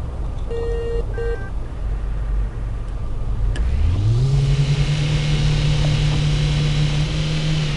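A car engine drones, then revs up higher and holds a steady hum.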